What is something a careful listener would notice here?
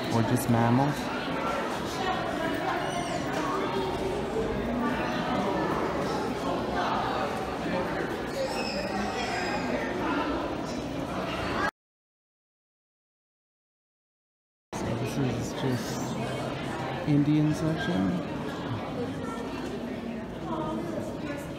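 A crowd of men and women chatter and murmur nearby in a large echoing hall.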